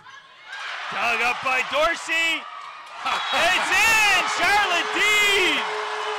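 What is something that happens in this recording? A crowd cheers in a large hall.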